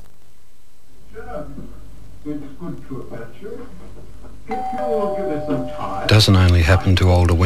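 An elderly man speaks quietly and slowly.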